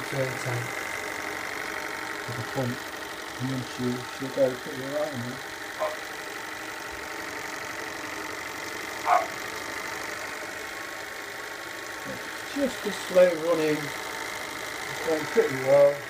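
A small steam engine runs with a steady hiss.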